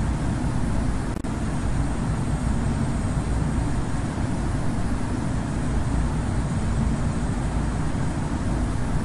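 Jet engines roar steadily with a low rumble.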